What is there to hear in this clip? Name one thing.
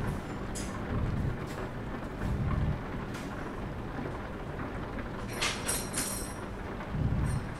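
A truck engine rumbles steadily.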